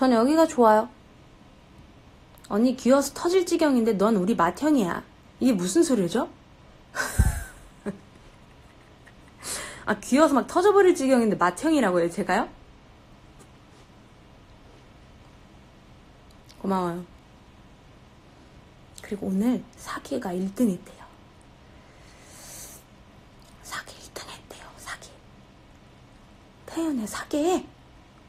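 A young woman talks with animation into a nearby phone microphone, in short bursts with pauses.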